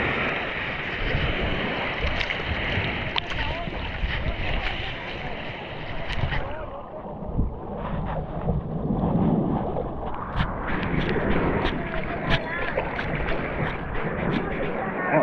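Water laps and splashes close by, outdoors in wind.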